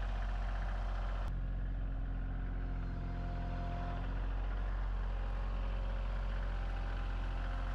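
Hydraulics whine as a loader lifts a heavy log.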